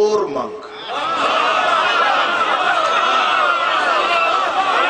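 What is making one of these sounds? A group of men chant together in response.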